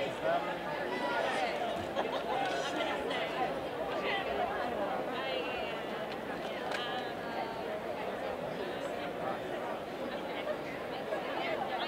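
A crowd of men and women chatter all around in a large echoing hall.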